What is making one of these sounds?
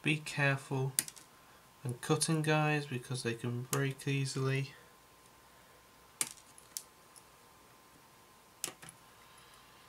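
Small plastic parts click and snap as they are handled and clipped.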